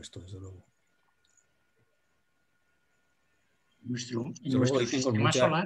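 A man speaks calmly into a computer microphone, heard as if on an online call.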